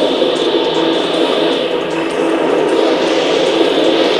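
Explosions boom from a video game.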